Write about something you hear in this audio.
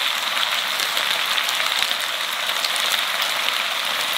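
A plastic packet crinkles.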